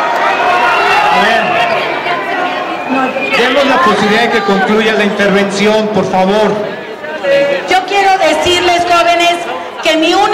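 A woman speaks forcefully through a loudspeaker.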